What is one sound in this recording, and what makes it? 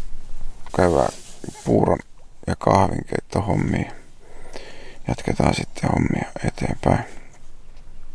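A man speaks calmly and close by, in a low voice.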